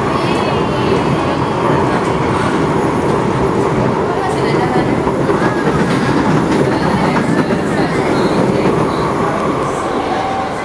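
A train rumbles steadily along elevated tracks, heard from inside a carriage.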